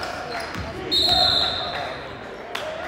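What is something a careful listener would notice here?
A referee's whistle blows shrilly.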